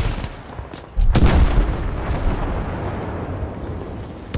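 A loud explosion booms close by and rumbles away.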